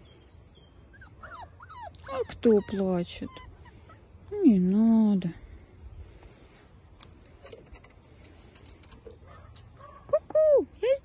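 Puppies whine and yelp in high, wavering cries.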